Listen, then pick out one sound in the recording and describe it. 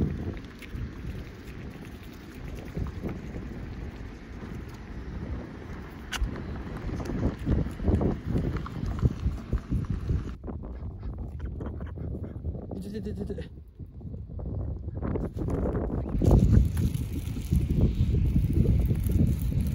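Ducks peck grain from a hand with quick taps.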